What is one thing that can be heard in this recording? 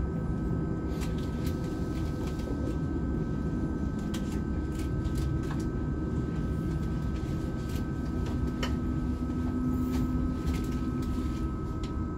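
Train wheels click and rattle on the rails.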